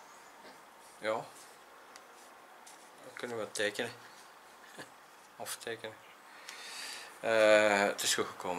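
A middle-aged man speaks calmly and close by, in short bursts.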